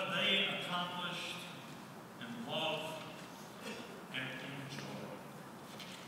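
An elderly man speaks into a microphone in an echoing hall.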